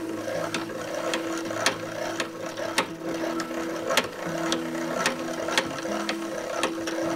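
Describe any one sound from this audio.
A small winding mechanism clicks at a steady pace.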